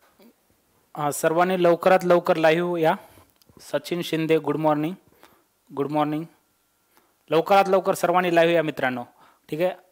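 A young man speaks calmly into a microphone, in short bursts.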